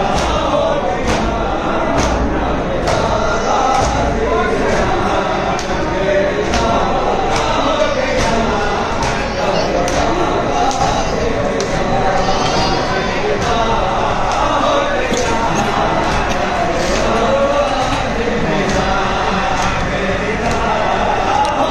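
A crowd of men chants loudly in a large echoing hall.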